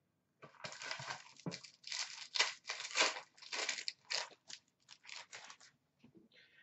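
A foil card pack crinkles and tears as hands open it.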